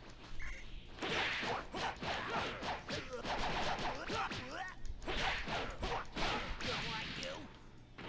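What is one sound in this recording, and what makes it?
Rapid punches and blasts thud in a video game fight.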